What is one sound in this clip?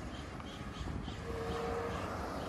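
A car drives by on a nearby road.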